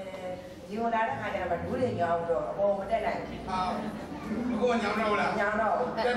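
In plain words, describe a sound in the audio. An elderly woman speaks quietly into a microphone.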